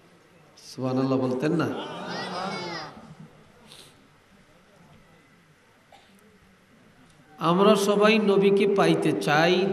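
An elderly man preaches loudly and with fervour into a microphone, heard through loudspeakers.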